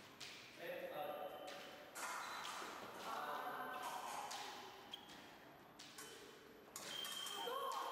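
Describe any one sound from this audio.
Fencing blades clink and clash.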